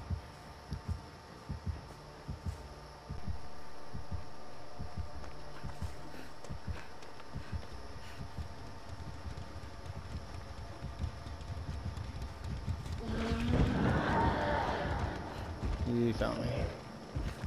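Footsteps crunch on leaf-strewn ground.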